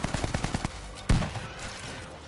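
An explosion bangs.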